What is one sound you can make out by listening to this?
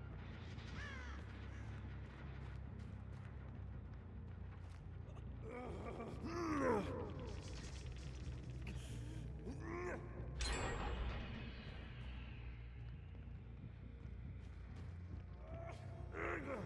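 A young man talks into a close microphone in short, lively bursts.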